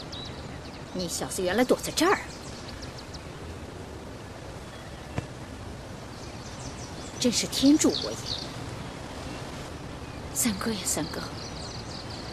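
A young woman speaks calmly and teasingly nearby.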